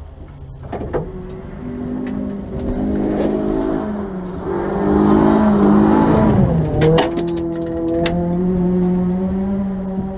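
A car engine starts and revs unevenly, then settles into a rough idle.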